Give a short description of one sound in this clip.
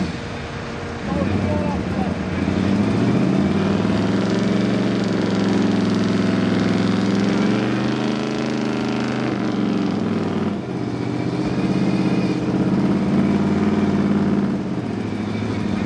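A truck engine revs hard and roars.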